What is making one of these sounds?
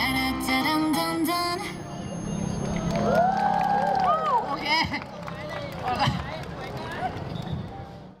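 Upbeat pop music with a singing voice plays loudly over loudspeakers.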